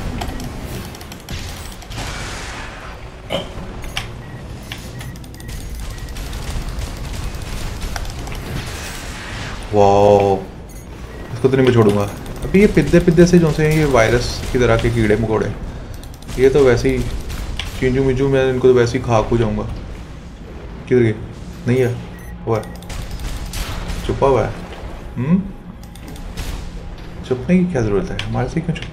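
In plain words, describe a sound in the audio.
Gunfire and explosions boom from a video game.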